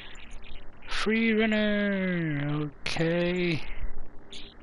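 A young man sings out long, drawn-out notes.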